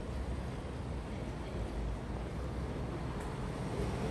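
A car approaches slowly along the street.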